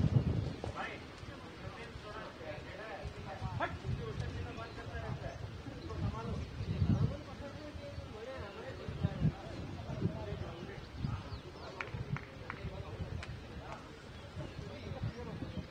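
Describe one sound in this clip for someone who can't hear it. Men call out and chat across an open field, some way off.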